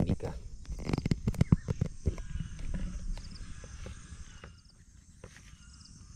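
A knife cuts through raw chicken with soft snaps.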